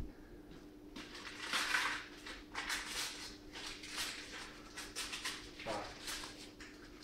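Plastic packaging rustles and crinkles.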